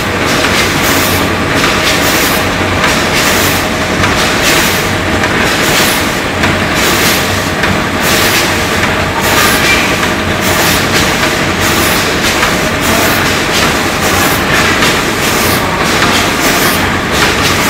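A packing machine hums and rattles steadily.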